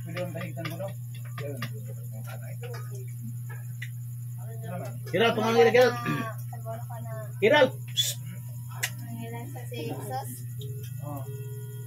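Several men talk and call out nearby.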